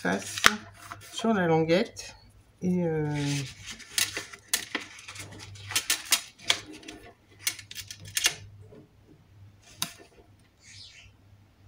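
Paper cards slide and tap softly on a mat.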